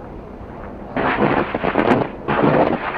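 Blasts rumble in the distance.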